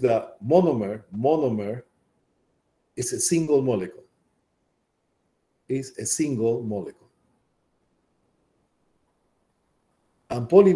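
A middle-aged man speaks calmly and explains into a close microphone, with pauses.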